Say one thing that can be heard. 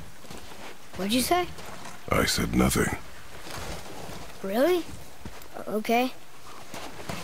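A boy speaks calmly nearby.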